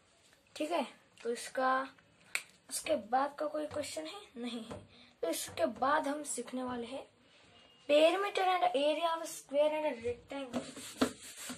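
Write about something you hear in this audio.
A young boy speaks calmly and close by.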